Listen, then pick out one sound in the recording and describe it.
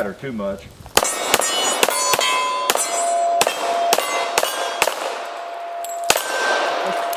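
A pistol fires a rapid string of sharp shots.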